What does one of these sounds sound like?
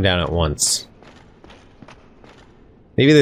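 Armoured footsteps clank on stone stairs.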